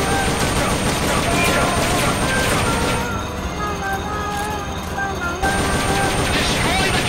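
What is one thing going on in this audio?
A heavy tank engine rumbles and clanks.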